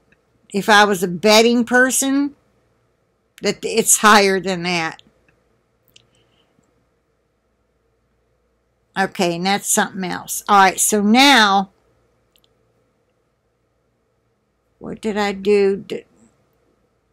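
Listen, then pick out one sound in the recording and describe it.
A middle-aged woman speaks calmly and close to the microphone, in short phrases with pauses.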